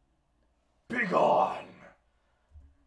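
A young man shouts loudly into a microphone.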